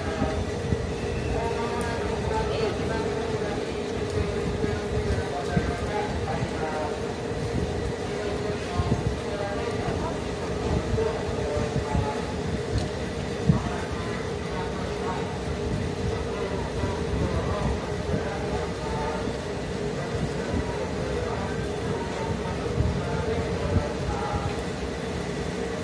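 A train rumbles slowly along the tracks as it approaches.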